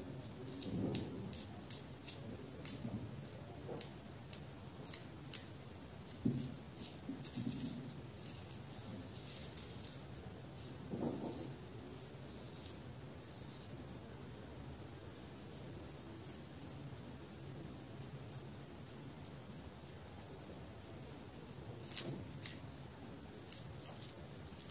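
Fingers rustle softly through hair close by.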